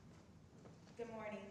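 A young woman speaks into a microphone, heard through loudspeakers in a large echoing hall.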